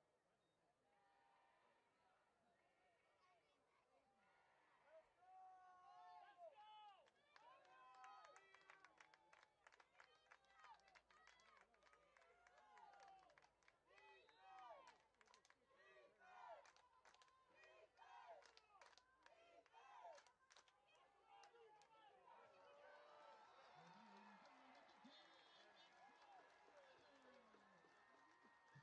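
Young men shout and cheer loudly close by, outdoors.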